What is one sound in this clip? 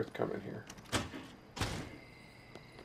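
A door creaks open and bangs.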